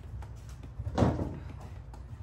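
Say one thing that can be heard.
A dumbbell knocks once against the floor.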